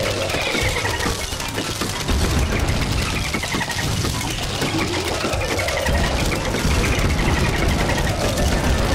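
Rapid popping shots from a video game fire in a dense, constant stream.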